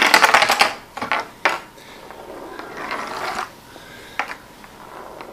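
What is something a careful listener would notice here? A small object clicks and knocks against a tabletop.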